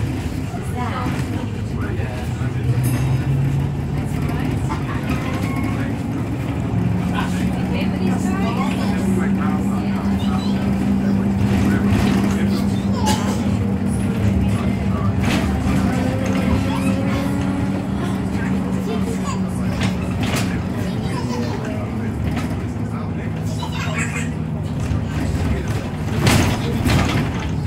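A bus engine hums and drones steadily while the bus drives along.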